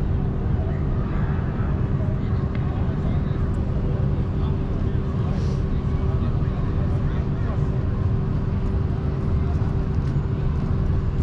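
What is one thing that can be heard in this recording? People chatter faintly in the distance outdoors.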